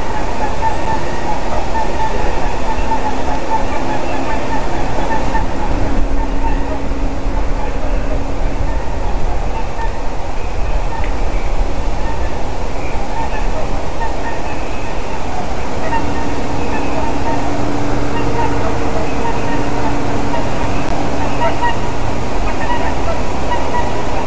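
Wind blows steadily through treetops outdoors.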